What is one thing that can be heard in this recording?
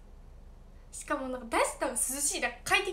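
A young girl speaks brightly and close to a microphone.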